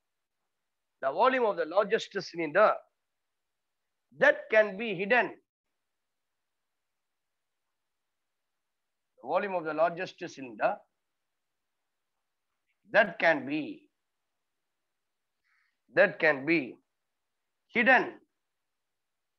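A middle-aged man speaks calmly in short bursts, close by.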